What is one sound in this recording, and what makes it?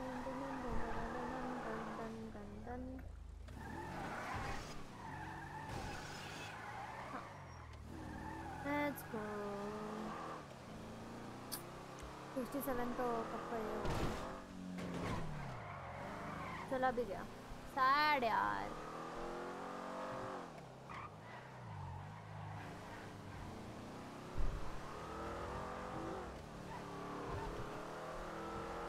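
A car engine roars and revs up and down as the car speeds along.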